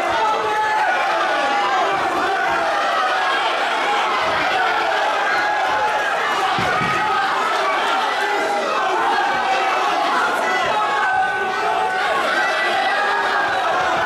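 A crowd cheers and shouts loudly throughout.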